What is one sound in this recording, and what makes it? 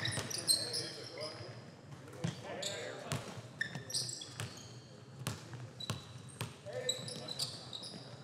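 A basketball bounces on a hard floor with sharp thuds in an echoing hall.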